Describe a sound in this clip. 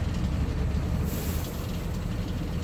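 Air brakes hiss briefly as a bus stops.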